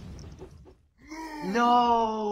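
A short electronic jingle plays when a game character dies.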